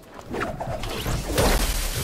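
A pickaxe swings through the air and strikes.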